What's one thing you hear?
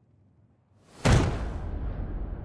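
A heavy figure lands with a loud booming thud.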